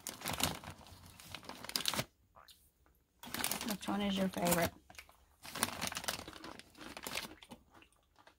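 A plastic snack bag crinkles and rustles.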